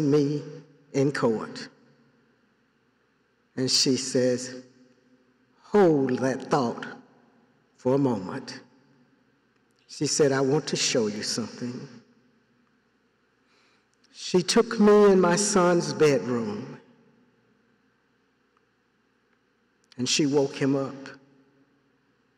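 An elderly man speaks slowly and deliberately through a microphone.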